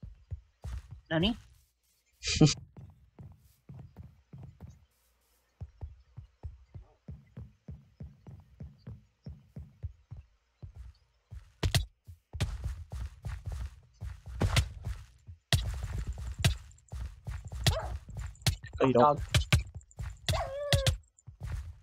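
A wolf whines and yelps.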